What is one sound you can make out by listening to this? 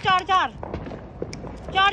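A firework fizzes and crackles on the ground.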